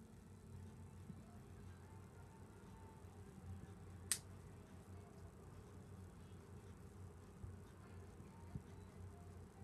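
Hair rustles softly as hands adjust it close by.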